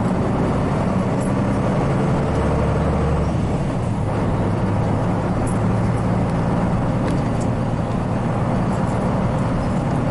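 A diesel city bus engine drones under load, heard from inside.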